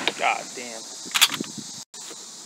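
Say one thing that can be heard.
A shotgun's action clacks as it is worked.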